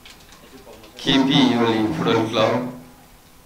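A man announces loudly over a microphone.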